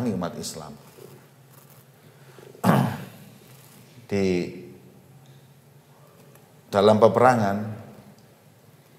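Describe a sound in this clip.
A man speaks slowly and calmly into a microphone, in a large echoing hall.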